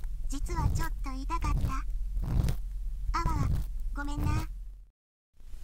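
A young woman's synthesized voice speaks with animation, close to a microphone, and ends in an apologetic whine.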